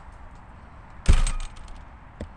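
A front door shuts with a thud.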